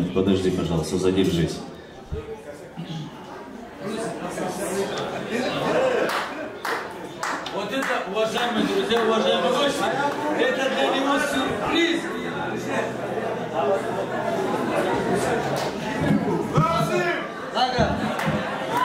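Men sing loudly together through a microphone.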